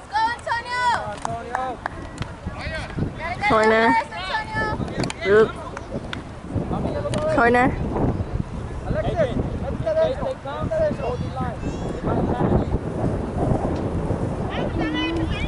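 Young players shout and call out across an open field, some distance away.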